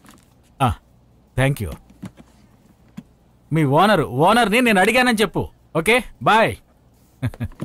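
An older man speaks with animation.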